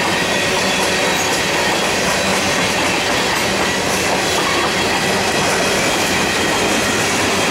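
Steel wheels squeal on the track.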